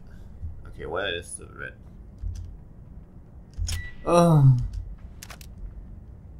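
A metal trap mechanism clicks.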